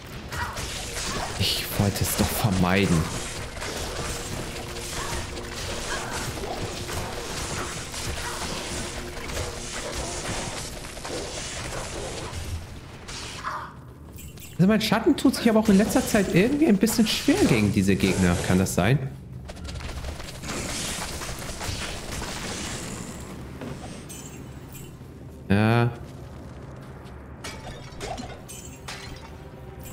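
Game combat sounds clash and crackle.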